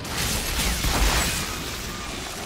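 An explosion bursts with a loud crackling roar.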